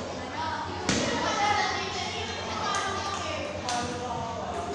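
A ping-pong ball clicks sharply against paddles and a table.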